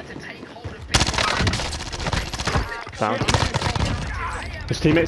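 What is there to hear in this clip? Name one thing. Rapid gunshots ring out close by.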